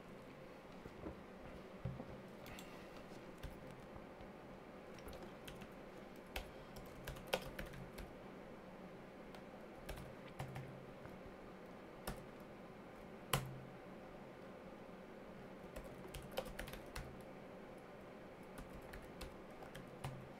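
Keyboard keys click in short bursts.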